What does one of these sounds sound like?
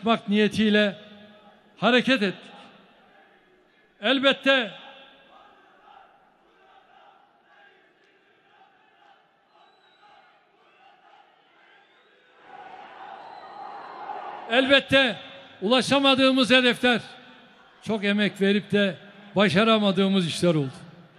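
A large crowd chants in unison in a big echoing hall.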